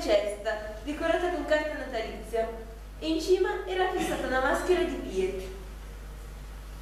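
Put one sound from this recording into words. A young woman reads out calmly into a microphone.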